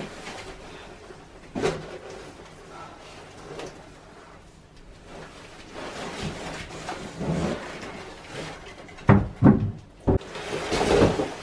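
Large cardboard and wooden panels knock and scrape as they are moved.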